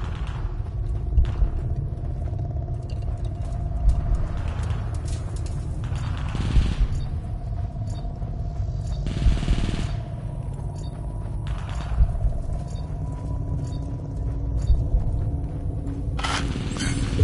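Heavy footsteps thud on gravelly ground at a slow, steady pace.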